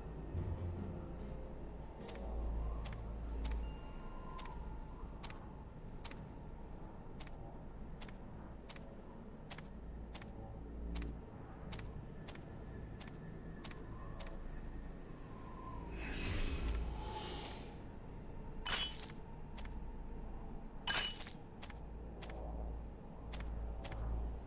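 A small spaceship fires sharp electronic shots again and again.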